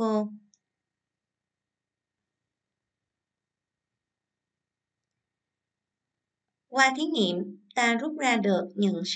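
A young woman speaks calmly and clearly into a microphone.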